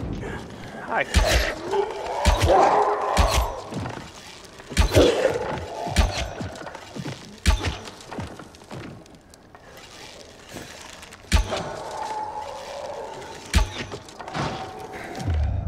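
A crossbow fires with sharp snaps.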